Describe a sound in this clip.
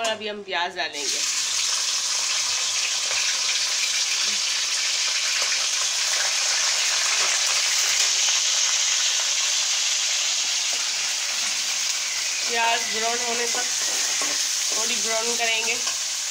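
Onions sizzle loudly in hot oil.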